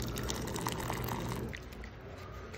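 Hot water pours from a dispenser into a paper cup.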